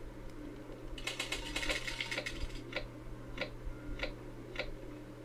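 Cards flick and click as they are dealt.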